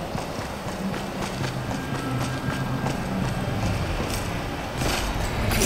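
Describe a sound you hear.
Quick footsteps patter on grass in a video game.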